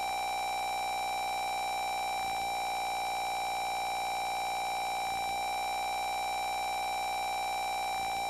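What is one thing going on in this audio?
A retro video game's electronic music plays steadily.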